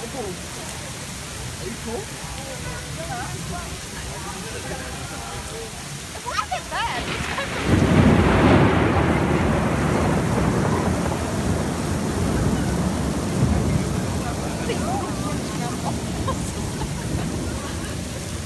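Strong wind roars in gusts.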